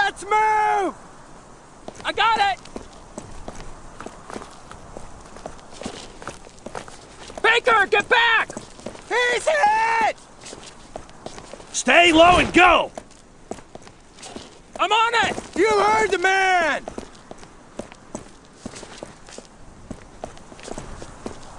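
Boots scuff and tap on hard ground as soldiers walk.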